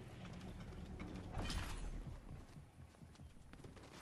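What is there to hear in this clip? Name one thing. A figure lands with a thud.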